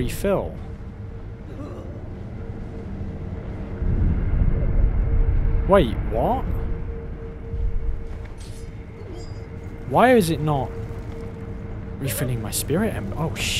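Bright chiming tones rise and fall.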